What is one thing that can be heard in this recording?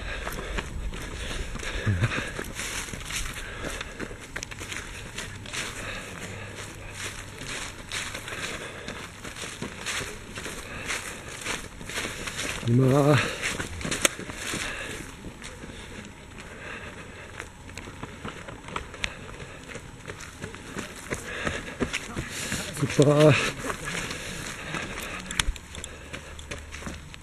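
Footsteps of runners crunch on gravel.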